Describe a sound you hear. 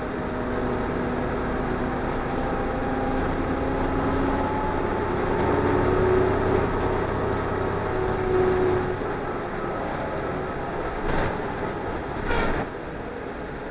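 A bus engine hums steadily as the bus drives.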